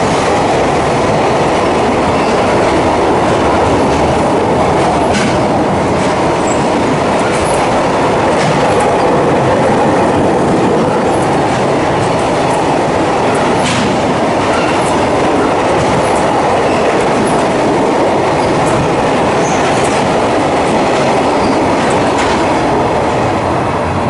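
Train wheels clatter and clank over rail joints.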